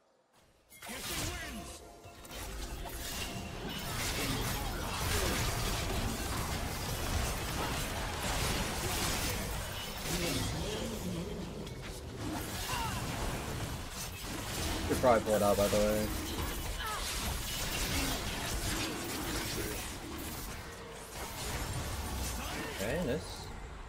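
Fantasy battle sound effects whoosh, zap and crackle in quick bursts.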